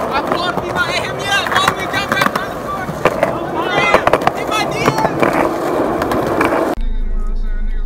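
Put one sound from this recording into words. Skateboard wheels roll over concrete outdoors.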